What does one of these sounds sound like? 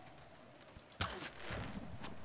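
A bow releases an arrow with a sharp twang.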